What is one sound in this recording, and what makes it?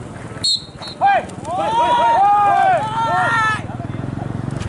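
Birds chirp overhead in a quick series of calls.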